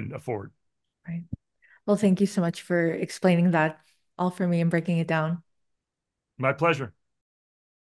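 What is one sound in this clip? A young woman speaks cheerfully over an online call.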